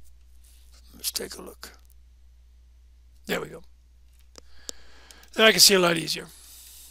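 A man speaks briefly and calmly into a microphone.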